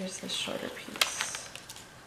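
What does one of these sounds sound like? A paper strip snaps sharply.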